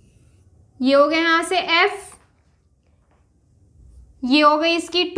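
A young woman speaks clearly and calmly, close by, pausing between phrases.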